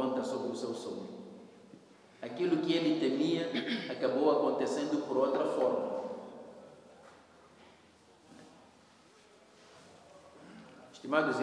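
A man speaks calmly into a clip-on microphone, close by.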